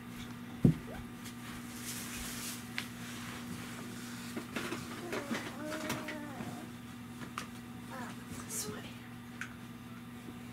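Plastic toys clatter and knock.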